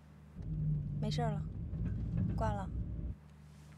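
A young woman speaks briefly and quietly.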